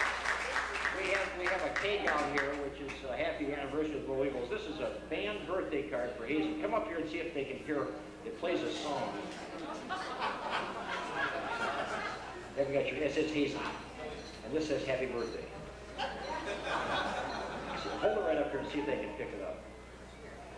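A small jazz band plays lively music in a room.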